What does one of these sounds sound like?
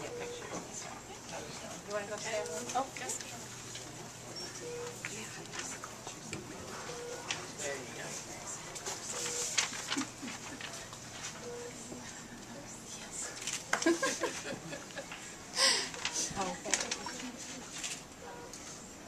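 Women talk and laugh nearby in a small crowd.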